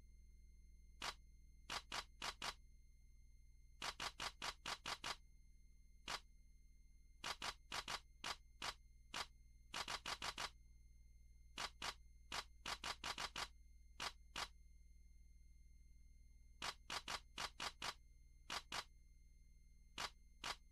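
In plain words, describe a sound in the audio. Short electronic menu beeps sound in quick bursts as options are changed.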